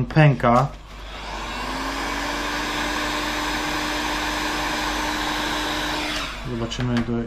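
A heat gun blows with a steady, loud whirring roar.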